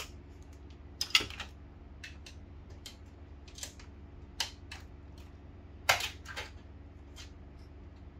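Plastic parts click and clatter as hands pull them apart.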